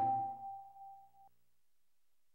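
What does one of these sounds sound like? An electronic menu chime rings out and fades away.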